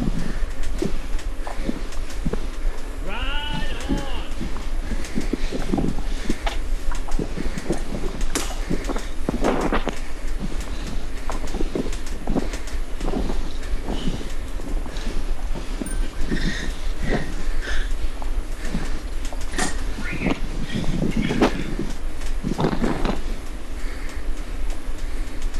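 A man breathes hard close to a microphone.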